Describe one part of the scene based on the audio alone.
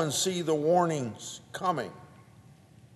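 An elderly man speaks slowly and deliberately into a microphone.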